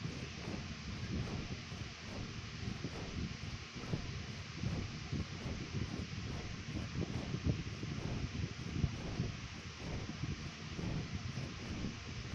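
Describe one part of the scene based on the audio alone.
Large wings beat steadily in flight.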